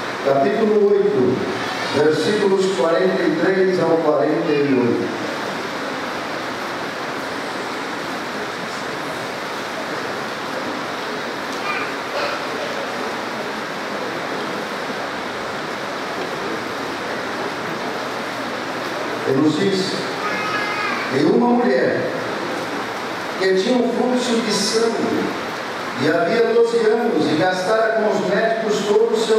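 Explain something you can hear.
A middle-aged man speaks earnestly through a microphone, echoing in a large hall.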